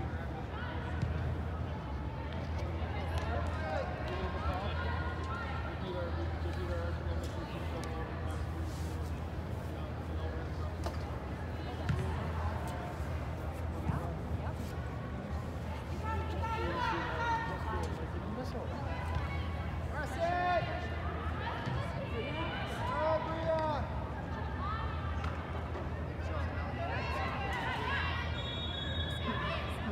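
Spectators chatter and cheer in a large echoing hall.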